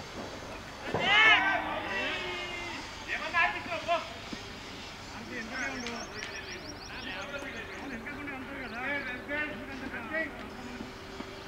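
Men shout across an open field outdoors.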